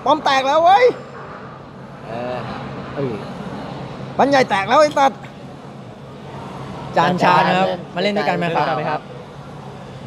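Young men speak with animation close by.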